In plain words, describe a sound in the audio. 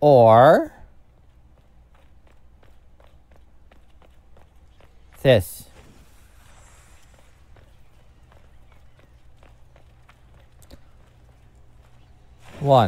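Footsteps crunch steadily on stone.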